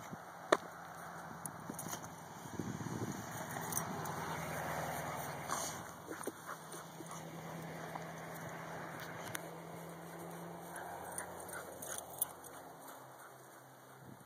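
Dogs' paws rustle and thud across dry grass close by.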